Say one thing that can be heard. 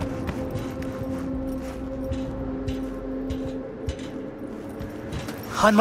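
Footsteps thud on hard stairs and a rooftop.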